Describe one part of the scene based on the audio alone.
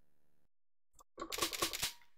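A short electronic beep sounds as a game menu selection moves.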